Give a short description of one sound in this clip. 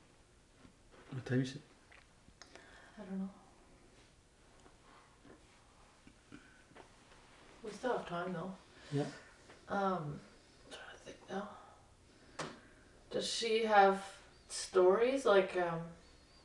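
An elderly woman speaks calmly and slowly, close by, with pauses.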